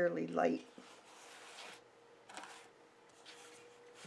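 Paper rustles and scrapes as a sketchbook is slid across a table.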